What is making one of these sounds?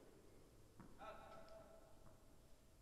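Tennis shoes squeak on an indoor court in a large echoing hall.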